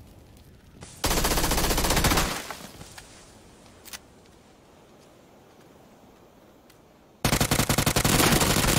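Rapid automatic gunfire rattles loudly in bursts.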